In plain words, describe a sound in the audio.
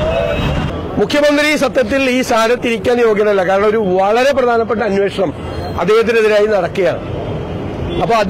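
A middle-aged man speaks firmly into microphones, close by.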